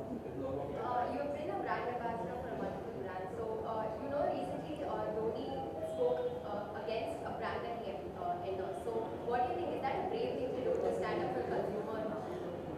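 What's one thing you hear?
A young woman talks calmly and cheerfully into microphones close by.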